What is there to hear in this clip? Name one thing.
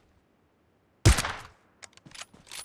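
A bolt-action sniper rifle fires a single loud shot.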